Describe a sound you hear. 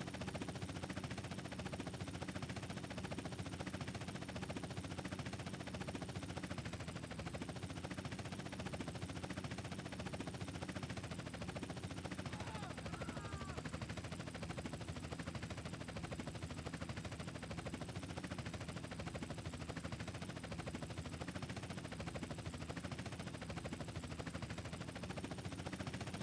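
Helicopter rotor blades chop rapidly and steadily.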